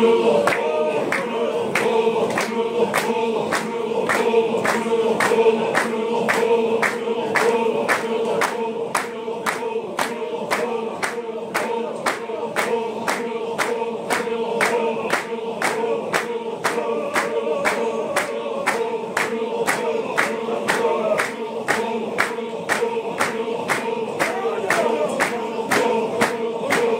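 A large crowd of men chants together loudly in a steady rhythm outdoors.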